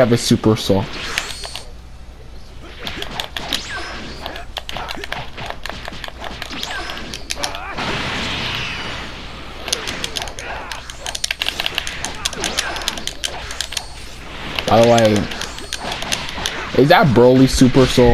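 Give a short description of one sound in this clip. Punches and blasts thud and crack in quick bursts.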